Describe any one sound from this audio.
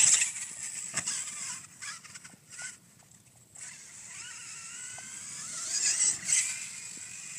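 A toy car's electric motor whines at high speed and rises in pitch.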